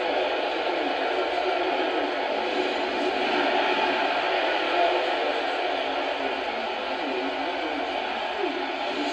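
A crowd cheers and roars steadily through a television speaker.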